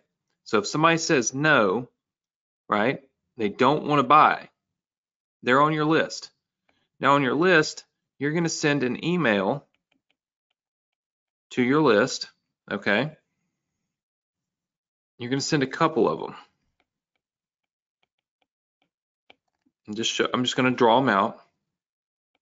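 A man talks calmly and close to a microphone, pausing often.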